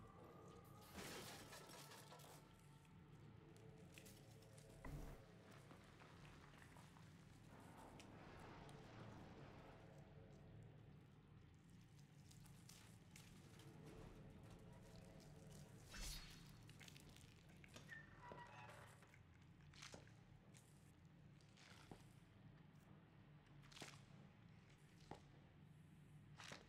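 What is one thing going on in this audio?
A young woman talks calmly into a microphone.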